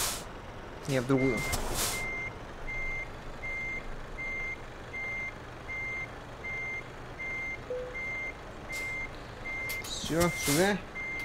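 A truck engine idles with a low hum.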